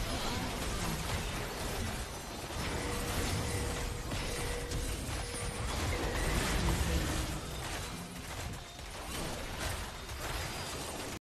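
Game combat sound effects clash and burst rapidly.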